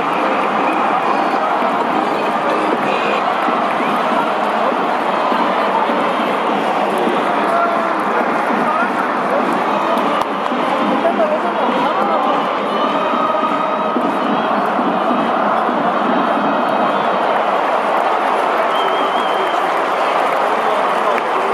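A large crowd cheers and shouts steadily in a big echoing stadium.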